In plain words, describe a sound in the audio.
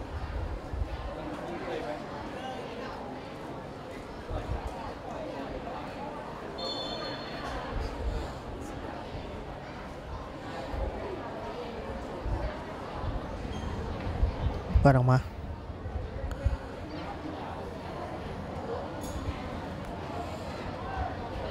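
Distant players shout and call out across an open field.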